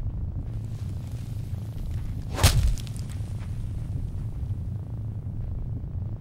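Soft footsteps patter on the ground.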